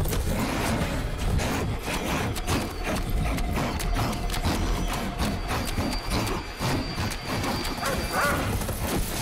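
A large dog snarls and growls close by.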